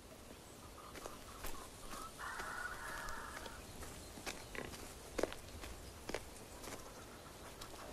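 Footsteps crunch on dry earth.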